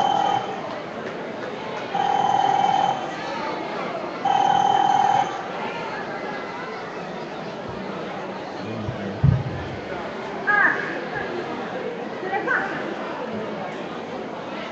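A crowd chatters outdoors in a large square.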